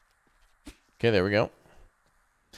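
A young man exclaims briefly into a close microphone.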